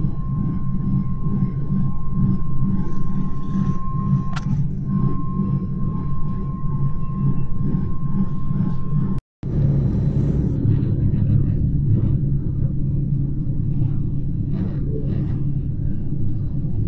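Wind blows hard against the microphone outdoors.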